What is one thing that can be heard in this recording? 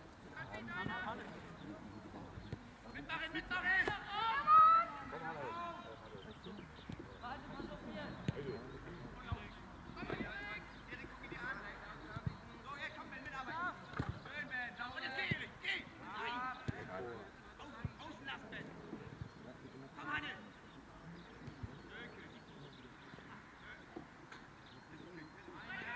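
Young men shout and call to each other across an open field outdoors.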